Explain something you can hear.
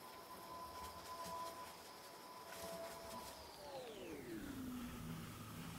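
Curly hair rustles as it is shaken and tossed.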